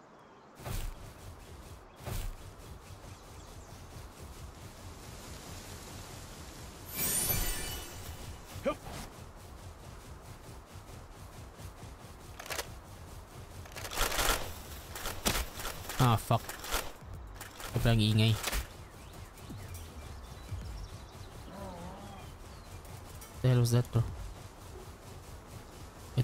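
Hooves thud on the ground as a creature runs.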